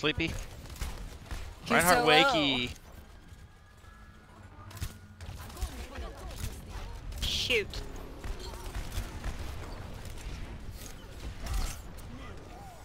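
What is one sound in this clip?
A rifle fires repeated sharp shots in a video game.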